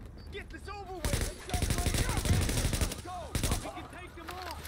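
Rapid gunfire bursts loudly nearby.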